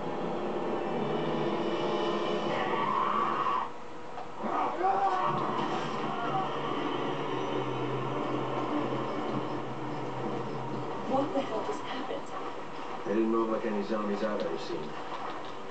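A man speaks in a low, serious voice.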